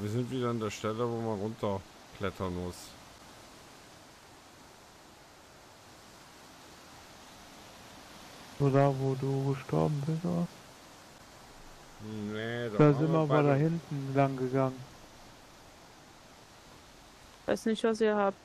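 A torch fire crackles softly.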